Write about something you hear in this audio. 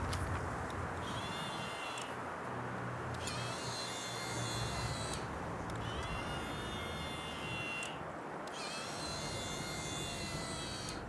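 A small electric motor whirs in short bursts.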